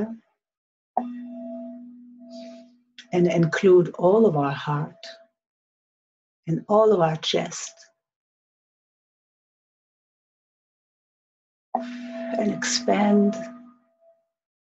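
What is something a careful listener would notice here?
A singing bowl is struck and rings with a long, humming tone.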